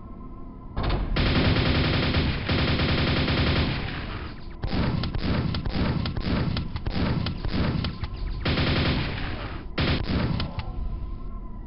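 A nail gun fires in rapid bursts.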